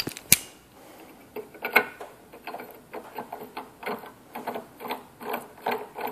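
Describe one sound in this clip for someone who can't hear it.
A metal tap grinds as it is turned into a pipe.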